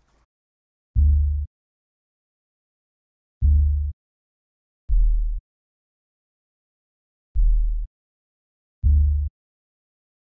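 Deep synth bass notes thump one at a time with pauses between them.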